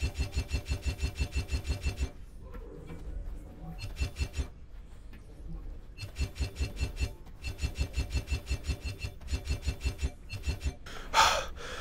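A machine clicks rapidly in a steady rhythm.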